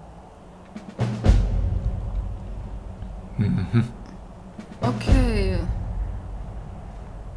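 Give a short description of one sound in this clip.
A deep, swelling musical fanfare booms out twice.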